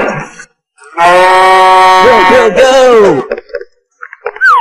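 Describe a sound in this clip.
A cow moos.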